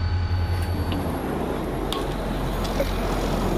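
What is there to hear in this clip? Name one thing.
A bus drives past close by on a road.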